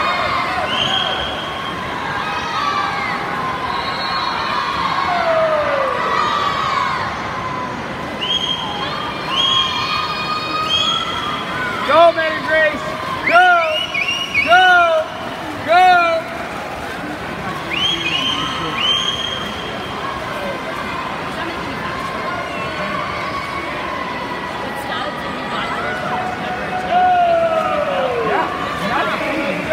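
Swimmers splash steadily through the water.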